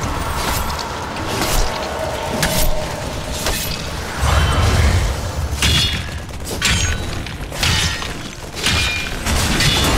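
Game weapons and spells zap and blast in quick bursts.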